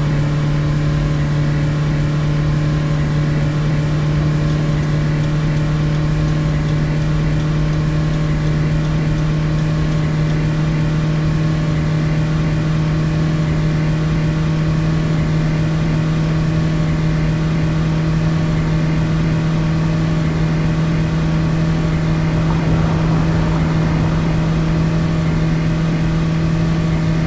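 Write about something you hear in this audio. A vehicle engine hums steadily at a constant pitch.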